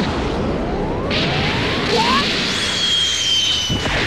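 Video game energy beams whoosh past.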